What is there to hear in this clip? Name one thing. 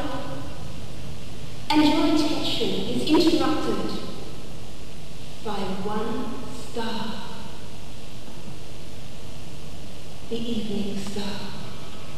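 A woman speaks expressively in a theatrical voice.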